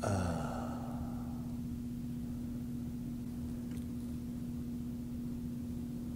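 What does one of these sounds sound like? Paper towels rustle softly under a gloved hand.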